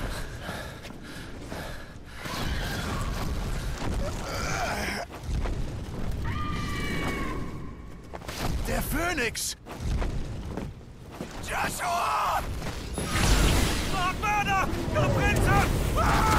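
A man calls out urgently, close by.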